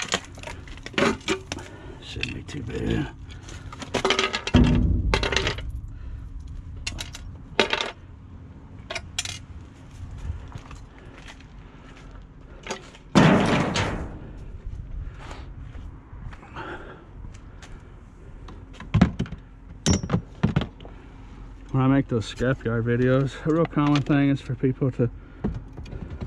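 Plastic parts rattle and clatter as they are handled.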